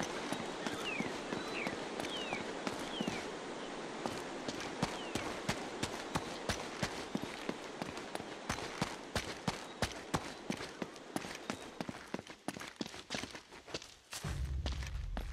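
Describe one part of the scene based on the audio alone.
Footsteps thud quickly on stone steps.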